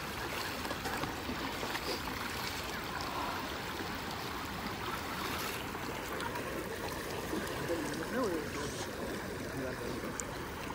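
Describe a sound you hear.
A river rushes and splashes steadily.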